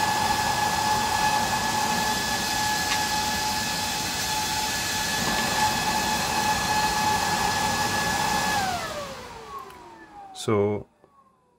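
A fan whirs loudly with a steady high hum, then winds down and falls quiet.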